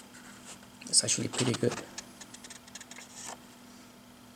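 Paper pages rustle as a comic book's page is turned.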